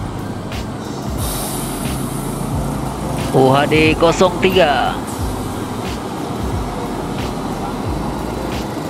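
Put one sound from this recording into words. A bus engine rumbles as the bus drives slowly past.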